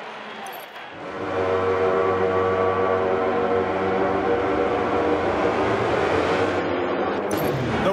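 Racing motorcycle engines idle and rumble steadily.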